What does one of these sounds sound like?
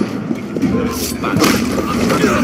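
A blade stabs into a body with a sharp, heavy thud.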